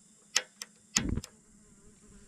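A gas stove igniter clicks.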